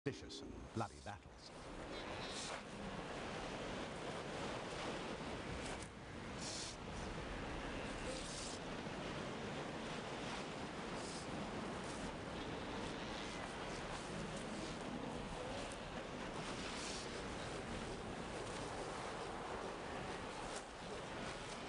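Sea lions grunt and bellow nearby.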